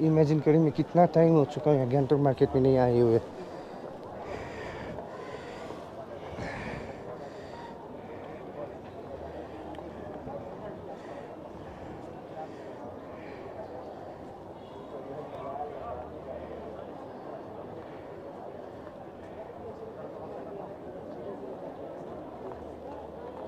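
A crowd murmurs at a distance outdoors.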